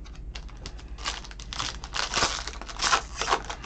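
A foil card pack crinkles as hands tear it open.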